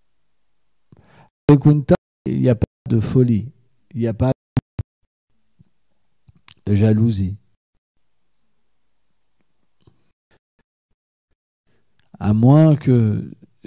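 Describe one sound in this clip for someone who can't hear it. A middle-aged man speaks calmly into a close microphone, in short phrases with long pauses.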